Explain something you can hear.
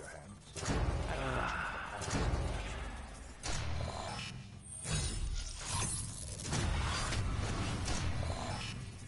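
Sharp whooshing sweeps sound in quick bursts.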